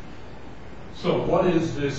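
An elderly man speaks calmly, heard from a distance.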